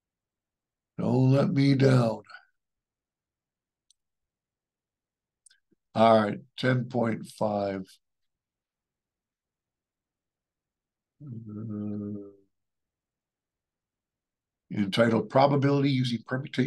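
An adult speaks calmly in short phrases through a microphone in an online meeting.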